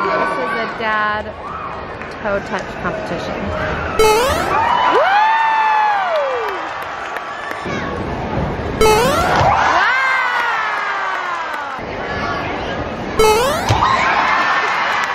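A large crowd of young girls cheers and screams in a big echoing hall.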